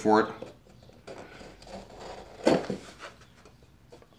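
Wooden pieces knock together as a joint is fitted.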